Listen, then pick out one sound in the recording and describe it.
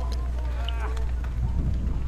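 A fire crackles in a barrel.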